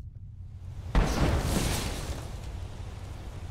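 A magic spell bursts with a shimmering whoosh.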